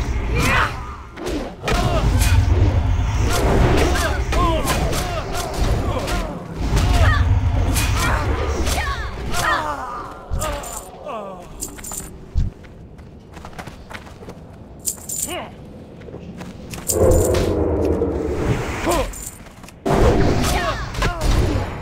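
Blades clash in a fight.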